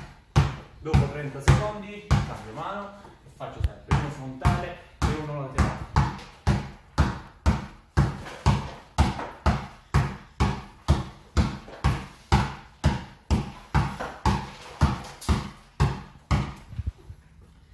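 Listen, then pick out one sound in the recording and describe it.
A basketball bounces rapidly and steadily on a hard floor, echoing in the room.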